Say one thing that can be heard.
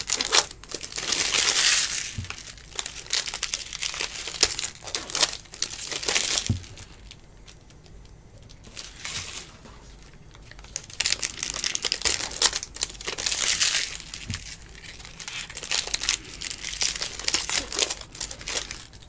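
Plastic wrappers crinkle and rustle close by.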